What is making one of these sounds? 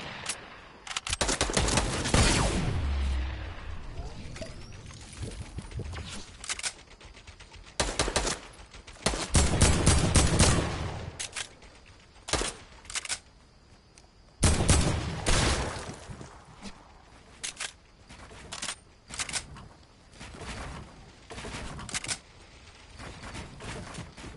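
Game building pieces snap into place with quick sharp clicks.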